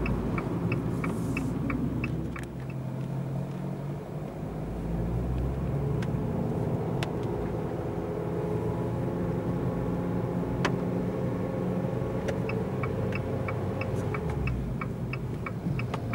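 Tyres swish over a wet road.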